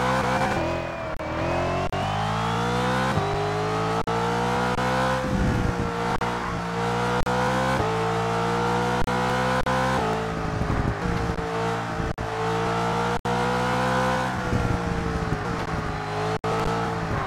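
A race car engine roars loudly, revving up through the gears and easing off into turns.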